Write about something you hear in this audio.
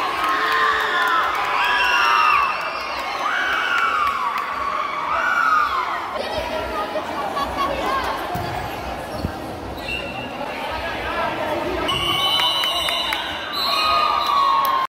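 Sneakers squeak sharply on an indoor court.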